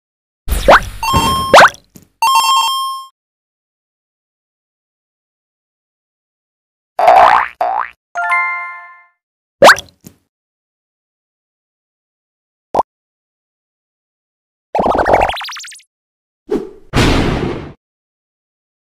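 Game sound effects chime and whoosh in short bursts.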